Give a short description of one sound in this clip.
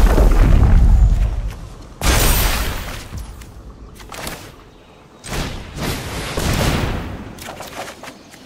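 Digital card game sound effects whoosh and chime.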